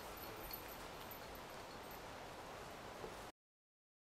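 Footsteps crunch on a dry forest floor.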